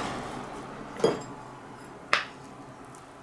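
A wooden paddle clinks against a ceramic plate.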